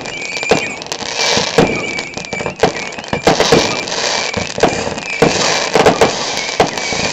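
Fireworks crackle and fizzle in the sky.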